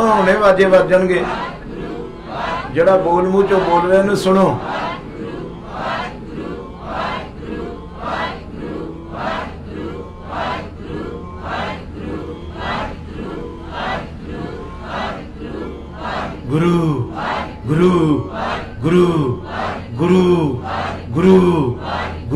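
An older man sings and chants into a microphone, heard through a loudspeaker.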